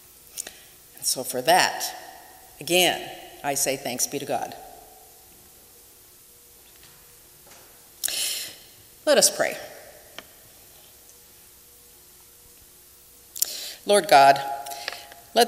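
A middle-aged woman speaks slowly and calmly through a microphone, with pauses, in a room with some echo.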